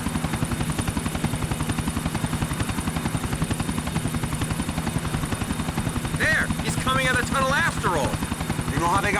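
Helicopter rotor blades thump rapidly and steadily close by.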